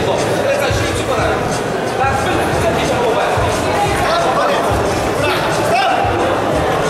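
A crowd of spectators shouts and cheers loudly throughout.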